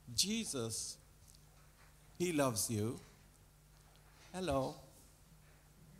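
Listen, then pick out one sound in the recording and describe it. An elderly man speaks slowly into a microphone in a large room, with pauses between short phrases.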